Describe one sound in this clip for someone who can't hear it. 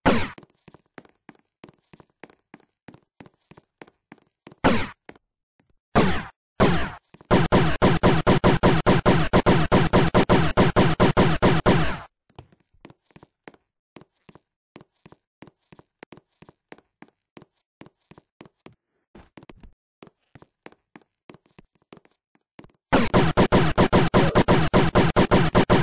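Quick footsteps crunch on rough ground.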